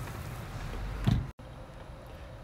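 A metal grill lid closes with a thud.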